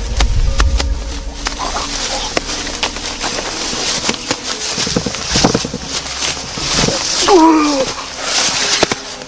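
Bodies thud and scuffle on grassy ground.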